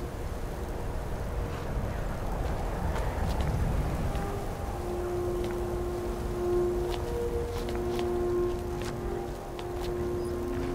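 Wind howls steadily in the background.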